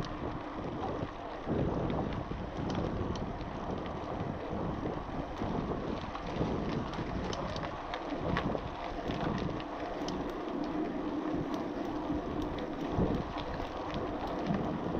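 Bicycle tyres crunch and rattle over a rough gravel track.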